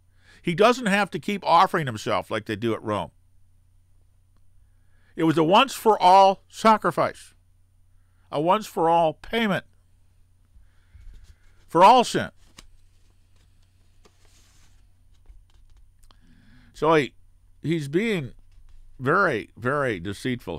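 An elderly man speaks calmly and thoughtfully into a close microphone, with pauses.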